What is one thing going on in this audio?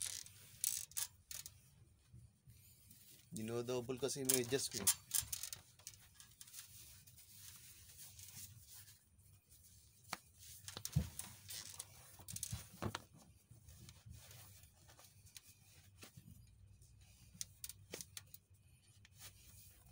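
Fabric rustles and shoes scuff as a man pulls on socks and shoes.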